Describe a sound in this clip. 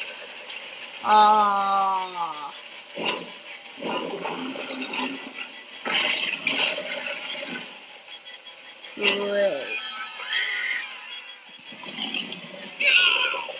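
A huge monster roars and growls.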